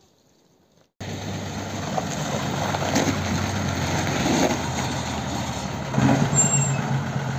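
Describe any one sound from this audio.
A bus engine rumbles loudly close by.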